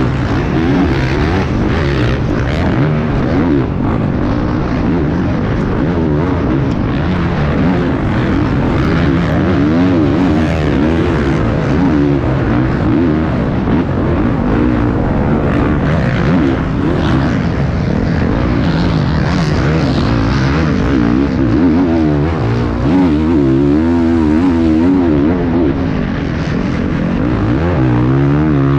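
Knobby tyres churn through loose dirt and mud.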